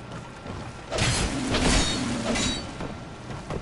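Heavy blows land with sharp thuds and clangs.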